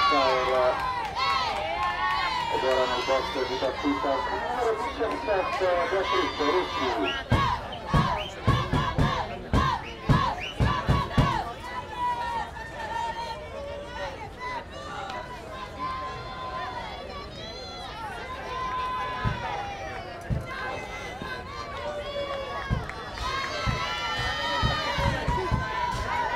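Young women chant and cheer loudly from the sidelines.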